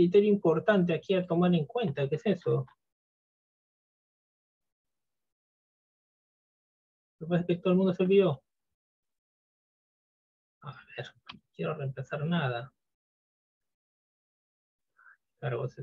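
A man speaks calmly through an online call microphone, in short bursts with pauses.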